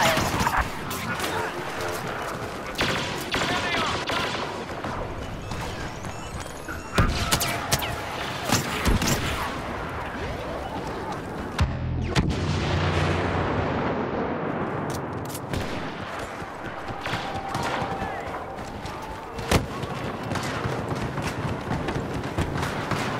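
Laser blasters fire in sharp bursts.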